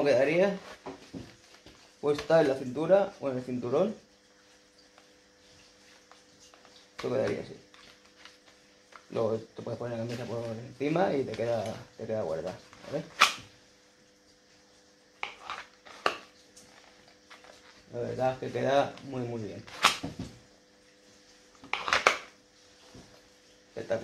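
Plastic holster gear clicks and rustles as a man handles it.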